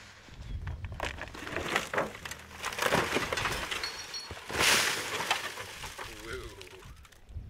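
A car body crunches and scrapes as it rolls over on dirt.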